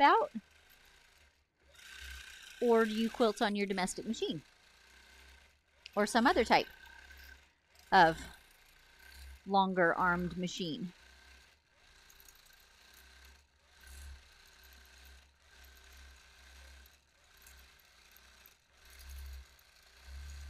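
A sewing machine hums steadily as it stitches.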